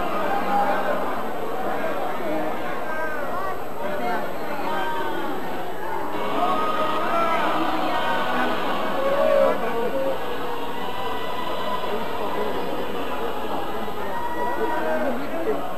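A man prays fervently close by.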